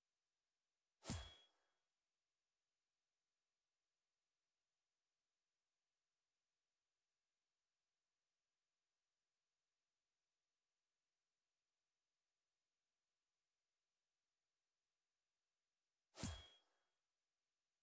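A game menu gives a short sharp click as a selection changes.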